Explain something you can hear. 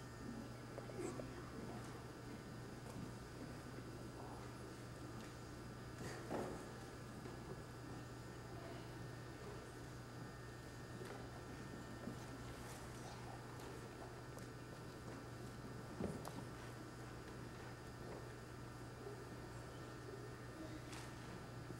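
Young children speak softly in a large echoing hall.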